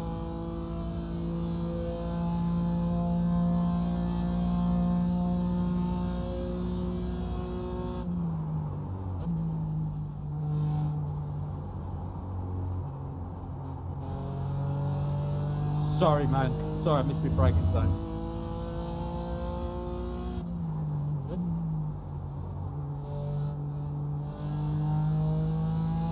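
A racing car engine roars steadily, its pitch rising and falling with speed.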